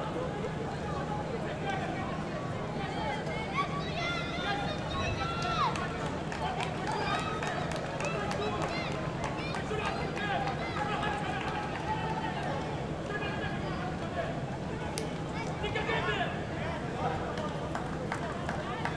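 Whistles and shouts ring out from the crowd.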